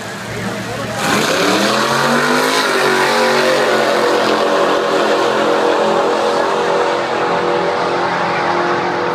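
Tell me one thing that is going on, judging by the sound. Race car engines roar and rev hard as the cars launch down the track.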